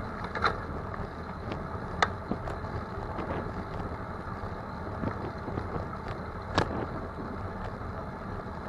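A vehicle engine hums steadily while driving along a street.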